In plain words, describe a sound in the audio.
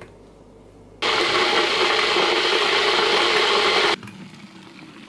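A kettle rumbles loudly as it comes to the boil.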